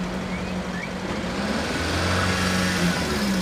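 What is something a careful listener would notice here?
A van engine rises in pitch as the van speeds up.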